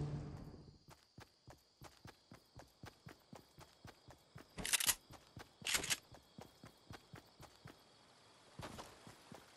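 Footsteps run across grass.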